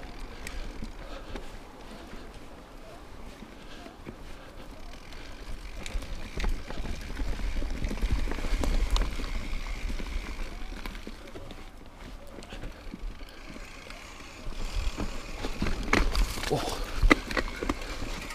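A bicycle's frame and chain rattle over bumps.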